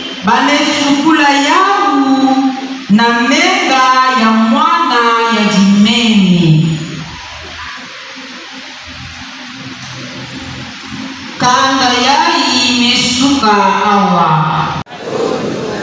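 A woman sings loudly into a microphone in a large echoing hall.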